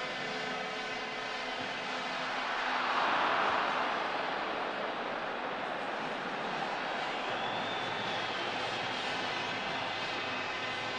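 A large stadium crowd roars, swelling loudly and then settling into a steady din.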